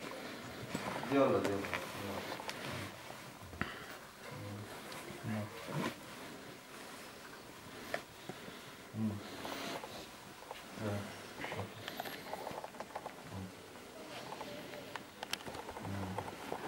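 A young woman talks softly close by.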